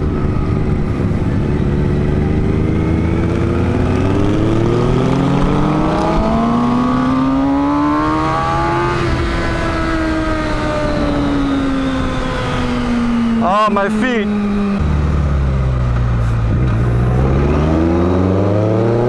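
A motorcycle engine hums close by, rising and falling in pitch as it speeds up and shifts gears.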